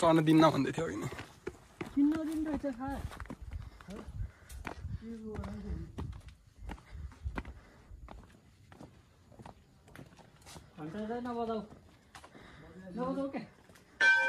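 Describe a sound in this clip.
Footsteps climb concrete steps and walk along a path outdoors.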